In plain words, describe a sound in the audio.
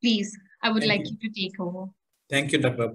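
A young woman speaks warmly over an online call.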